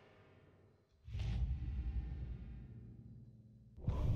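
A drawer slides open with a low rumble.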